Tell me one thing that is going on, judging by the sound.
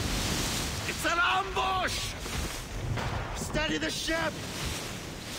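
A man shouts urgently in a loud voice.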